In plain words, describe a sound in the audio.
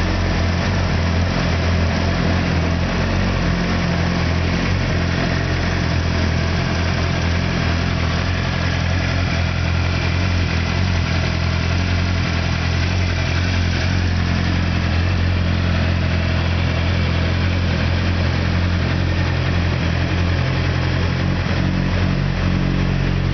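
A motorcycle engine idles steadily nearby.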